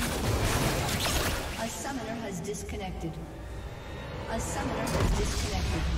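Game spell effects crackle and whoosh in a fight.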